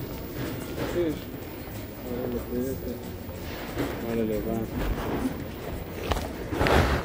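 A shopping cart rattles as it rolls.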